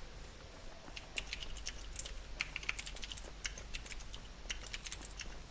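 Footsteps run quickly through rustling grass.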